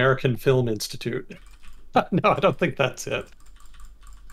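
A young man talks quickly and with animation into a close microphone.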